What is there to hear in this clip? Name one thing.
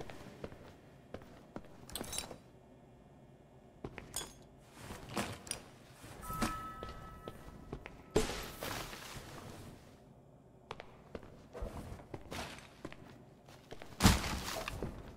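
A plastic rubbish bag rustles and thuds onto a hard tiled floor.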